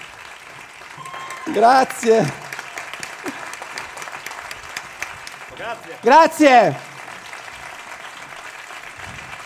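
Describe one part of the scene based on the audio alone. An audience claps and cheers throughout.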